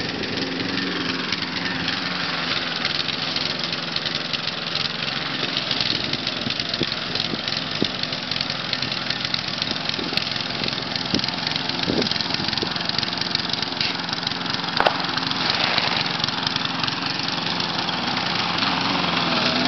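A lawn mower engine roars steadily close by.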